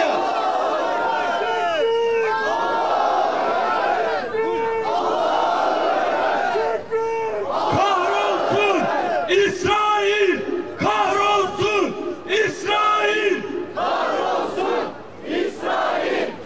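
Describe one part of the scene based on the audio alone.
A man speaks loudly and passionately into microphones, heard through loudspeakers outdoors.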